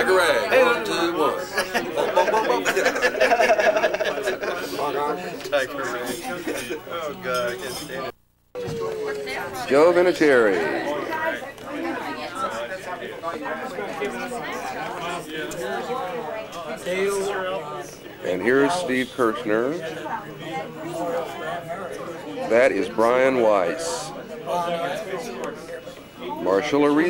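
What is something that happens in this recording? A crowd of adults chatters loudly all around.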